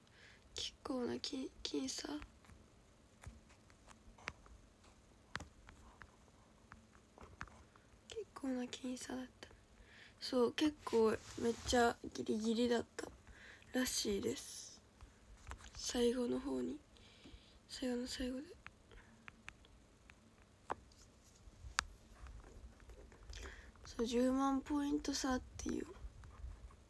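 A young woman speaks calmly and close to a microphone, in short bursts with pauses.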